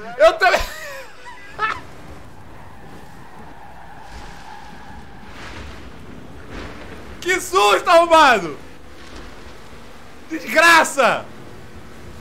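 A young man talks and exclaims with animation close to a microphone.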